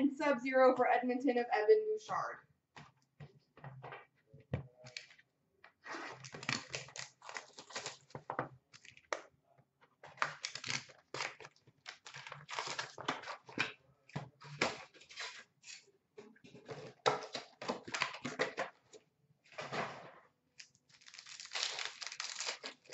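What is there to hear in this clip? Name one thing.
Foil card packs crinkle and rustle in someone's hands.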